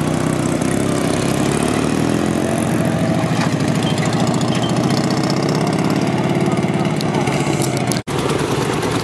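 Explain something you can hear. A motorcycle engine putters and chugs close by.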